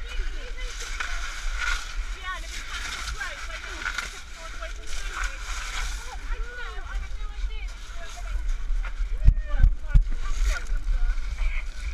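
Pebbles crunch and clatter under someone crawling.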